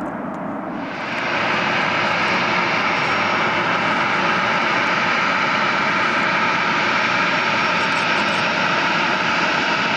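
A twin-engine jet airliner's engines whine as it taxis close by.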